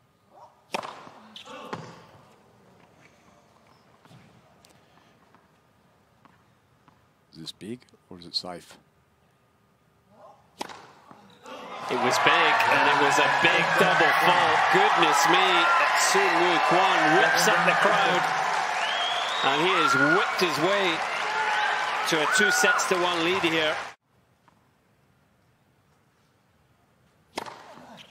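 A tennis ball is struck by a racket with sharp pops.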